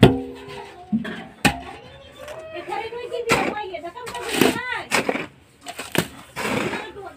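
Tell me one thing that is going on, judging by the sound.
A wooden pole thuds and knocks against a hard surface.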